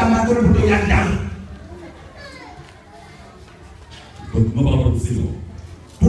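A man speaks forcefully through a microphone, loud and echoing.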